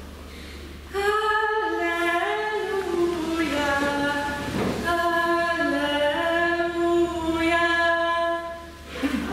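A young woman sings into a microphone in an echoing hall.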